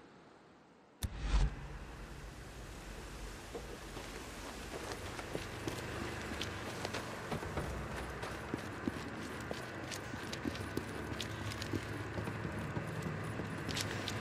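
A man's footsteps thud steadily on hard ground.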